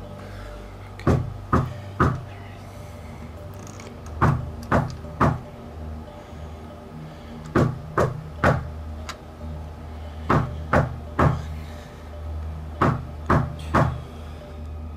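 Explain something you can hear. A metal door latch clicks and knocks sharply in quick bursts of three.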